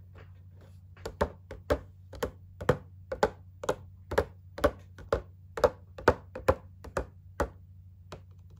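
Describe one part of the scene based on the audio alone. Fingernails tap rapidly on a plastic box.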